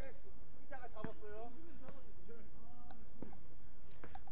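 A basketball bounces on a hard outdoor court.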